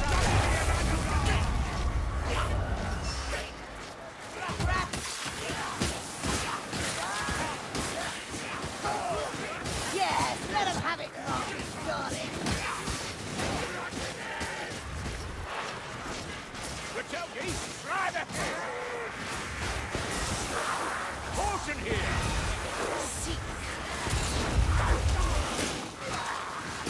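Blades slash and thud into creatures in quick, repeated blows.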